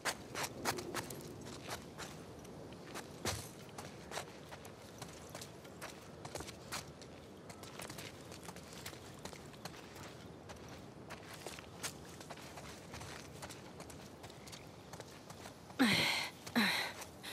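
Footsteps crunch on gravel and concrete.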